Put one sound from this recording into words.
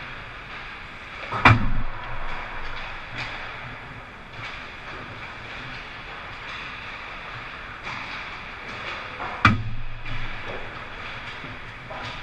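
Sticks clack against the ice and the puck.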